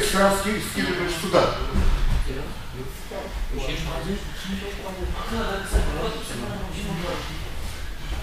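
A woman talks nearby.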